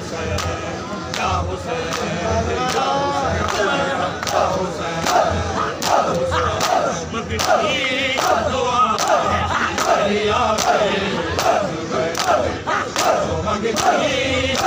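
Men beat their chests with their hands in a steady rhythm.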